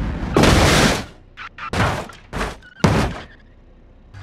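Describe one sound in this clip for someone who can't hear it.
A vehicle crashes and tumbles with loud bangs.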